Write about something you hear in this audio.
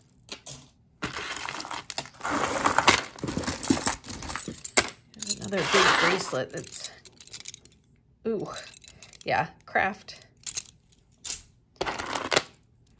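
Metal and bead bracelets clink and rattle as hands handle them.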